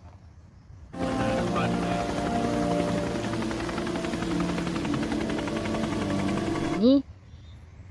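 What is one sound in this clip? A helicopter's rotor roars and thumps overhead.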